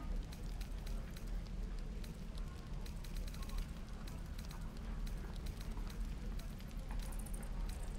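Soft menu clicks tick repeatedly as a selection moves between items.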